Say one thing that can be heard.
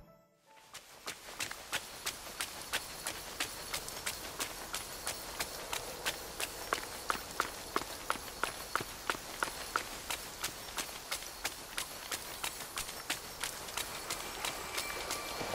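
Quick footsteps patter steadily across grass.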